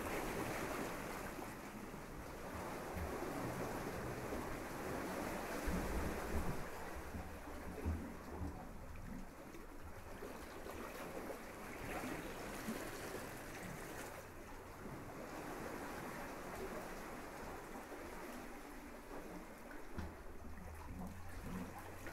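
Gentle waves wash onto a sandy shore and recede.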